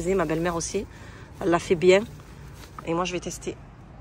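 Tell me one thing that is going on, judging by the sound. Leaves rustle as a hand handles them.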